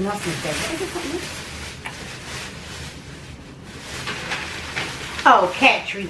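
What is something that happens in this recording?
Paper rustles as a bag is handled.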